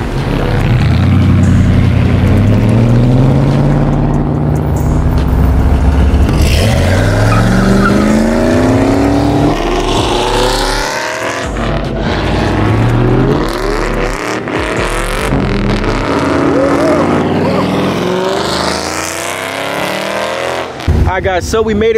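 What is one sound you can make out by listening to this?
V8 pickup trucks and cars accelerate hard past on a road.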